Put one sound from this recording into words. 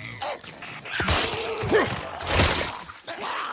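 A blade stabs with a heavy, wet thud.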